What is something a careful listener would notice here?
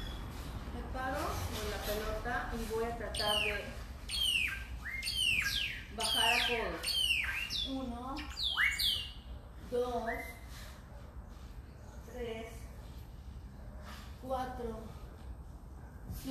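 A young woman talks nearby.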